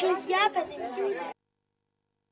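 A young woman speaks calmly and close up.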